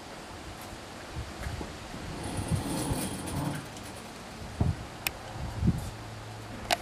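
A wooden boat knocks and thumps as it is lowered on a hoist.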